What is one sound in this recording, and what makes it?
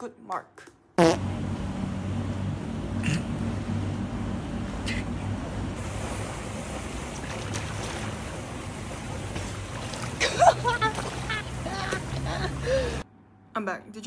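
Water splashes as a person swims.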